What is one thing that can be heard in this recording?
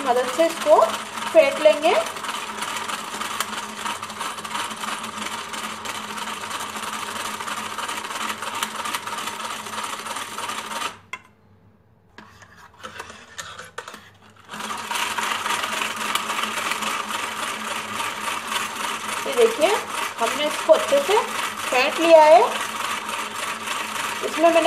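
A hand grater scrapes rapidly into a bowl.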